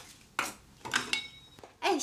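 A spatula scrapes a pan.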